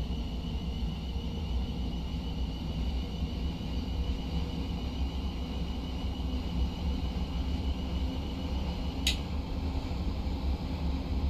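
A train rumbles steadily along the rails with a low engine hum.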